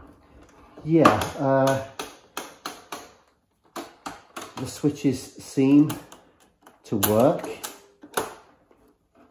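Buttons on a portable cassette player click and clack as they are pressed.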